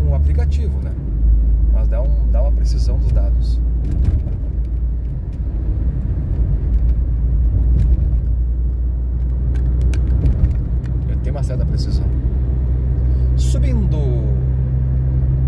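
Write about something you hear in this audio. A car engine hums steadily from inside the car as it drives along a road.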